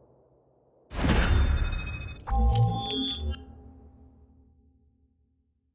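A loud whoosh swells up and fades away.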